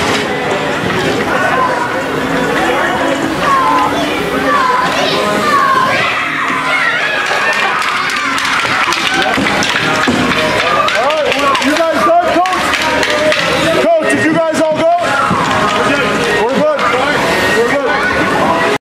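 Young children chatter and shout excitedly in an echoing rink.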